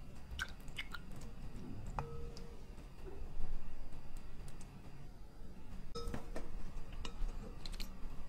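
Chopsticks click against a glass bowl.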